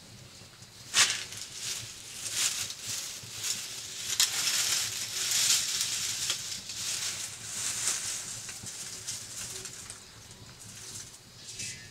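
A fire crackles and roars in a stove.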